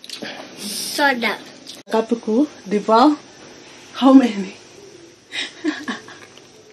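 A woman hums with pleasure while eating.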